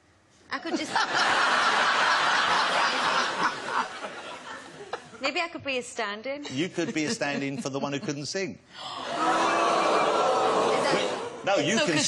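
Women laugh loudly.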